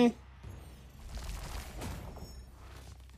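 A magical burst crackles and whooshes.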